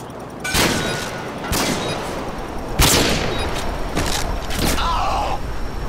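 A sniper rifle fires loud, echoing shots.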